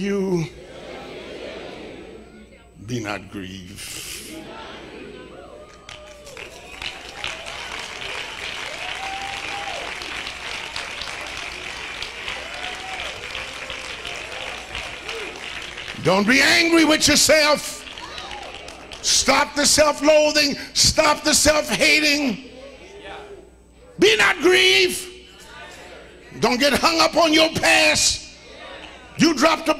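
A man preaches with animation through a microphone.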